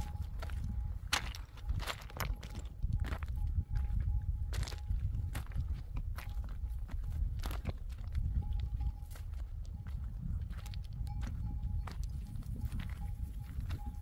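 Footsteps crunch on a rocky, gravelly path.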